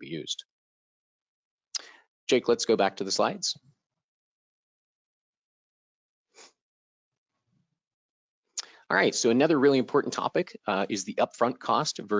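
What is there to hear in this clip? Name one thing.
A man speaks calmly through a headset microphone, as if on an online call, with pauses.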